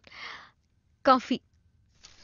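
A young woman speaks a few calm words nearby.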